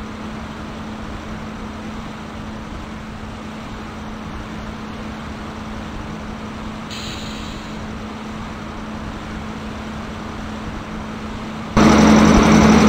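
A passenger train rumbles steadily along the tracks.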